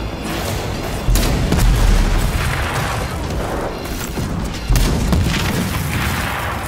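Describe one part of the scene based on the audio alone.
Gunfire blasts rapidly.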